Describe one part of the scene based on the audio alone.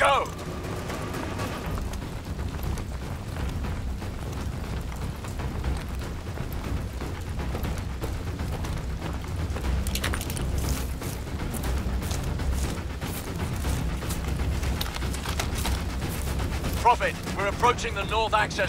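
Boots thud quickly as soldiers run over stone and grass.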